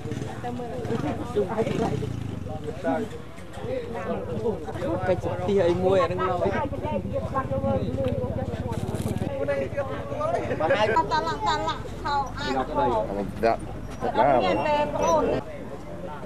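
Several men and women talk over one another nearby in a crowd.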